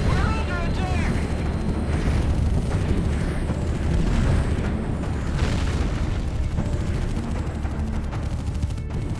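Guns fire in rapid bursts and explosions boom.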